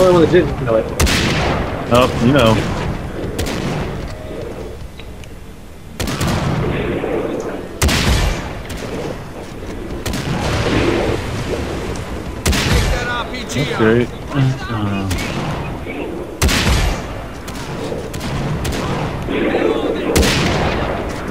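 A sniper rifle fires single loud shots that echo away.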